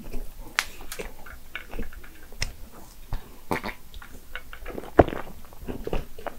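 A woman sips a drink through a straw, close to a microphone.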